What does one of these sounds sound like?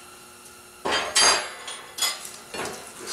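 Metal clanks sharply.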